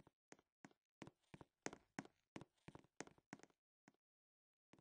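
Footsteps patter quickly and evenly on a hard floor.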